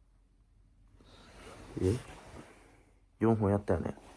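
Fabric rustles and brushes close by.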